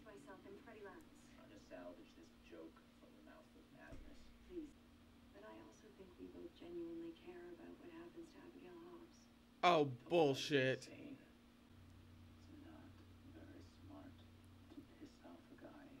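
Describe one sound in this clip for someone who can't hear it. A young woman talks quietly close to a microphone.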